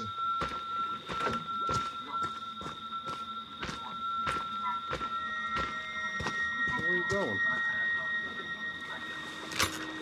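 Heavy footsteps thud on the ground at a steady pace.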